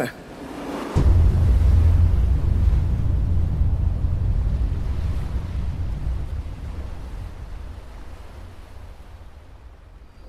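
Strong wind howls.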